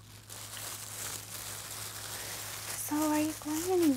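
A plastic wrapper crinkles in a hand.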